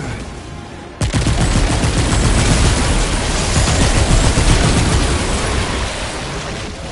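An electric weapon fires with crackling, buzzing zaps.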